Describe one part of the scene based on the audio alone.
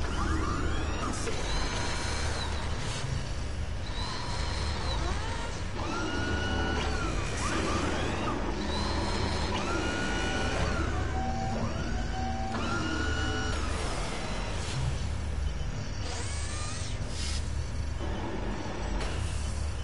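A large machine hums low and whirs with repeated rising and falling whines.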